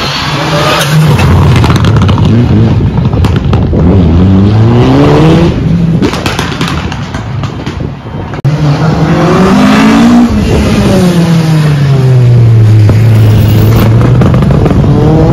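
A rally car engine roars past at high speed, its pitch rising and falling as it changes gear.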